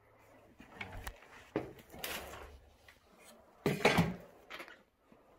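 A metal cabinet knocks against a wall.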